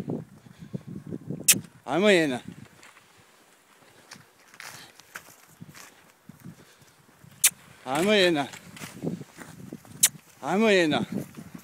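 Dogs' paws crunch through snow as they run.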